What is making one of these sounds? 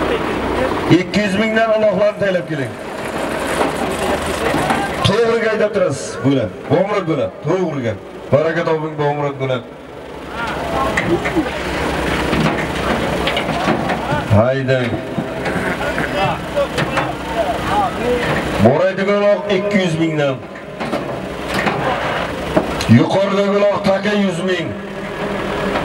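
Men call out loudly outdoors.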